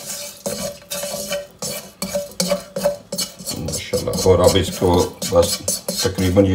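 Spices sizzle and crackle in hot oil.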